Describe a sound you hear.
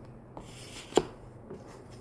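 A small object clicks sharply.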